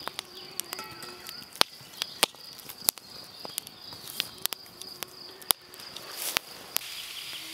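A campfire crackles and pops up close.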